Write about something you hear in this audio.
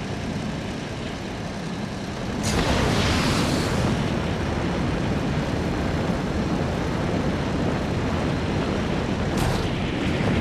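A vehicle's engines roar steadily.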